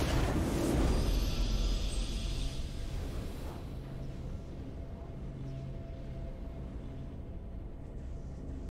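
A triumphant fanfare plays.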